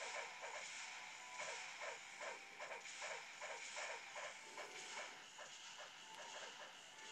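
Tinny electronic game sounds of clashing weapons repeat quickly through a small speaker.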